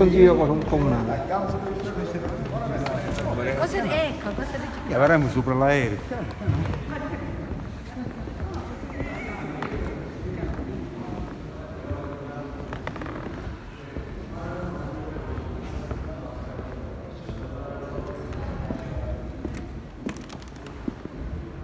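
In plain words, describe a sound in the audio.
Other men talk quietly further off.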